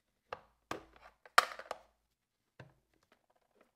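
Plastic parts of a toy click and knock under handling.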